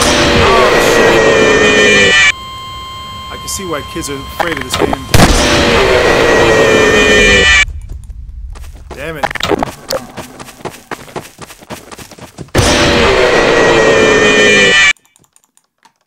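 A creature lets out a loud, harsh screeching scream.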